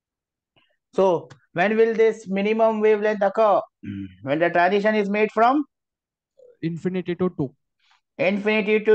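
A middle-aged man talks calmly over an online call.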